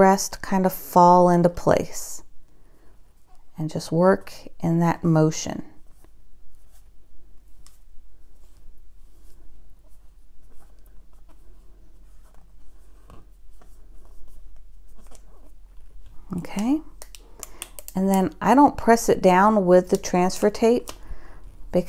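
Plastic film rustles softly as hands smooth it onto a plastic bottle.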